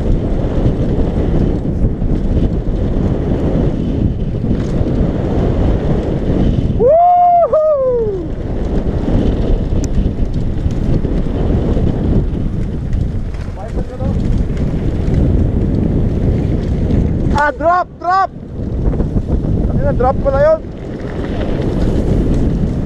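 Bike tyres roll and crunch over gravel.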